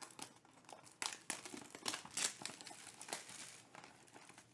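Plastic wrapping crinkles as hands tear it open.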